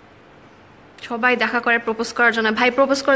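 A young woman speaks close to the microphone with animation.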